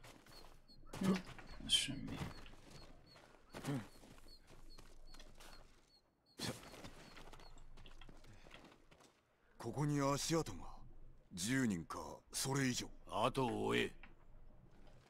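A young man talks into a microphone, close by.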